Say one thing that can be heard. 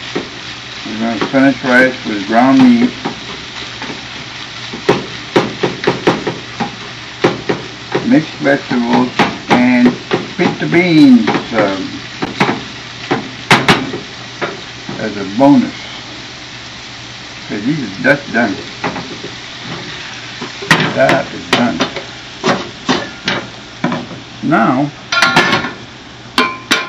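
A man talks calmly close by.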